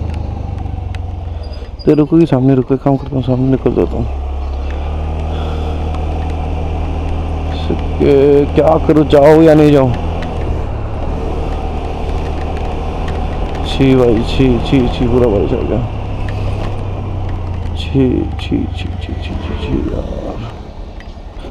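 A scooter engine hums steadily while riding along a road.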